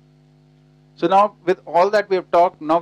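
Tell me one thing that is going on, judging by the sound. A middle-aged man speaks with animation into a headset microphone, heard through a loudspeaker.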